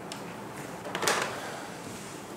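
A phone receiver clunks down into its cradle.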